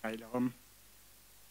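An elderly man speaks briefly into a microphone.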